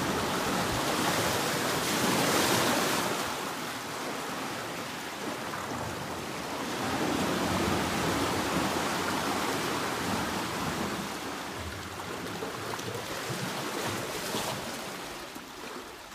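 Water rushes and churns loudly through a narrow rocky channel.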